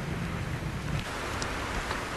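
Rain pours down steadily outdoors.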